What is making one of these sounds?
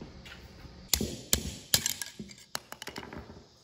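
A pry tool scrapes and clinks against metal.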